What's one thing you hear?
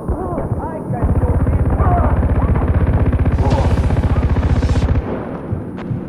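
A machine gun fires in a rapid, steady burst.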